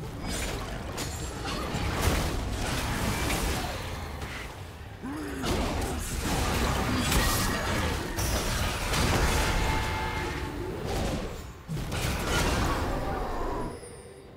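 Game spell effects whoosh, clash and crackle during a fight.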